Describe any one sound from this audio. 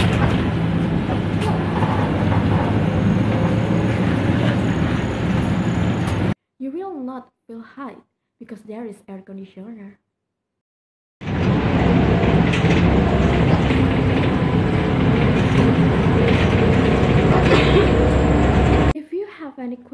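A bus engine rumbles steadily from inside a moving bus.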